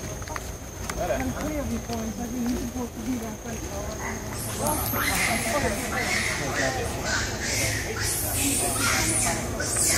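People chat nearby outdoors.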